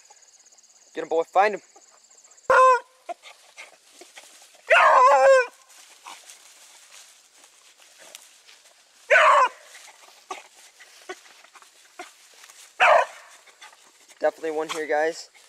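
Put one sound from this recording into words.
A dog bays and howls in short bursts nearby.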